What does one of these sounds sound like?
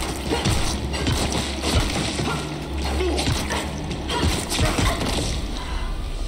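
A heavy metal pipe swings and thuds against a creature.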